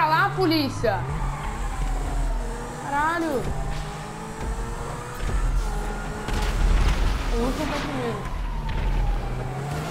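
Tyres screech as a car slides.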